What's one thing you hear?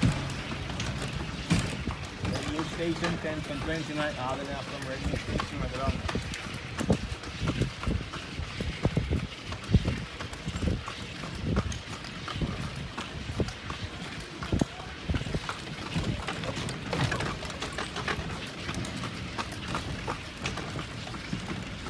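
A horse's hooves clop steadily on pavement.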